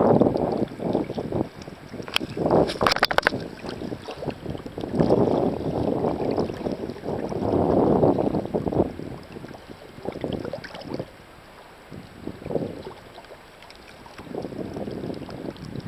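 Water splashes and laps close by.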